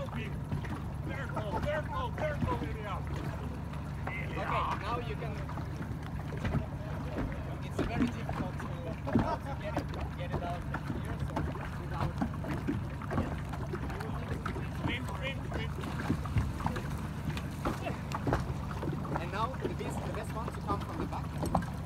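Small waves lap and splash.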